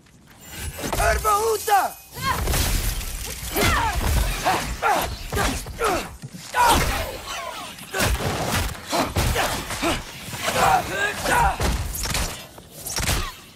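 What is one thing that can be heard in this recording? Creatures screech and shriek in short bursts.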